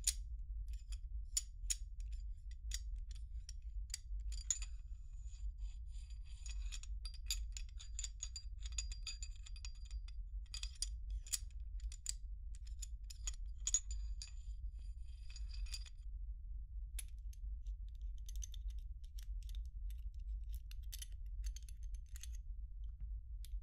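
Small metal parts click and clatter as they are handled.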